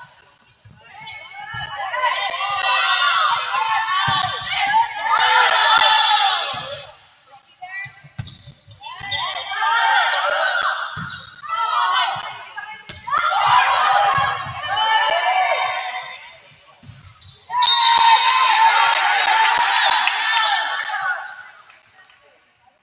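A crowd of spectators cheers and shouts loudly in an echoing hall.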